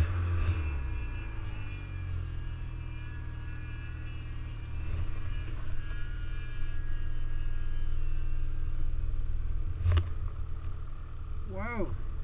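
A snowmobile engine drones steadily up close.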